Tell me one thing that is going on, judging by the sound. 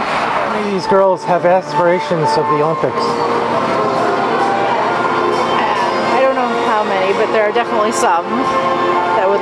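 A middle-aged woman talks calmly and cheerfully, close by.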